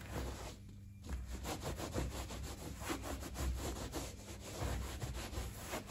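A cloth rubs over leather.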